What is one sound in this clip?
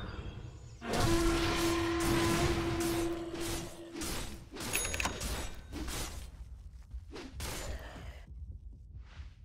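Game combat effects clash and burst with magical whooshes.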